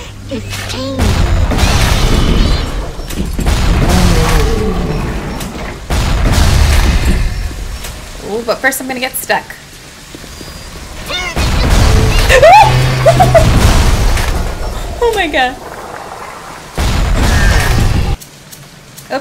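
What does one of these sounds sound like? Grenade explosions boom loudly.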